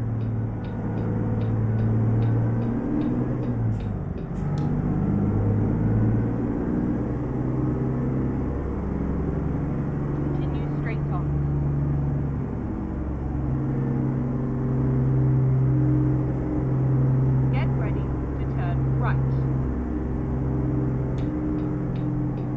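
A truck engine rumbles steadily, shifting pitch as it changes gears.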